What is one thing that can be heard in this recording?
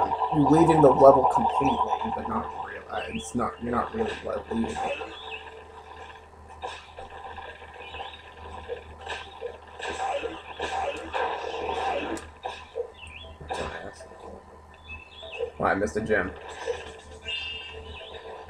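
Video game music plays through a television speaker.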